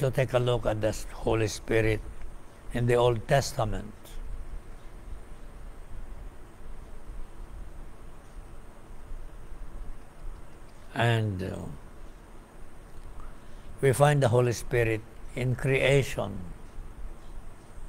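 A middle-aged man speaks calmly into a close microphone, with long pauses.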